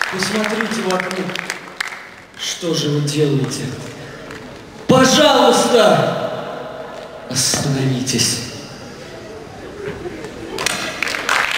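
A young man speaks loudly through a microphone in a large echoing hall.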